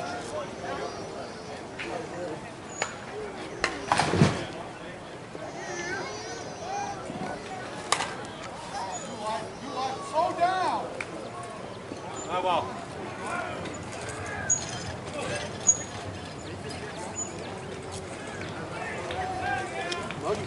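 Men talk and call out across an open field.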